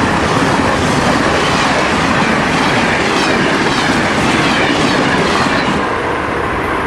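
A passenger train rushes past on the tracks with a loud rattling rumble.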